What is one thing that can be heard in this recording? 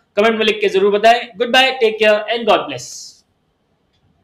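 A young man speaks clearly and energetically into a microphone.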